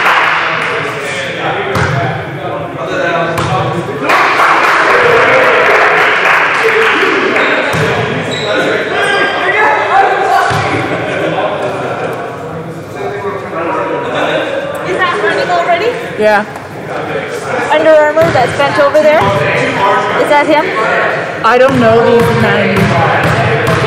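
Men talk and call out across a large echoing gym.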